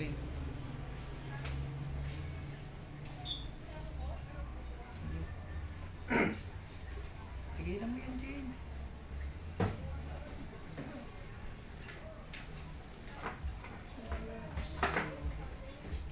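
A straight razor scrapes across facial stubble.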